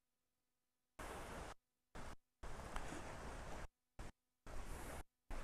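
Small waves lap gently on a sandy shore.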